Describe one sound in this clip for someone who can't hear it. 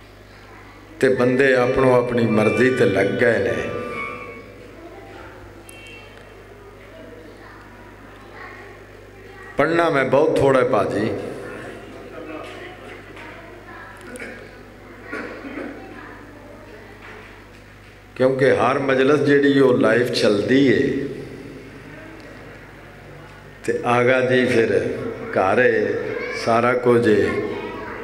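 A man recites loudly and with feeling into a microphone, heard through loudspeakers in bursts with pauses between.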